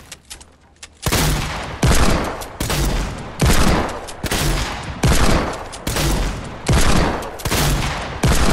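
Heavy gunshots boom in quick succession.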